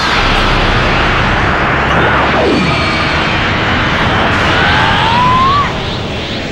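A huge energy ball rumbles as it sweeps across the ground and explodes.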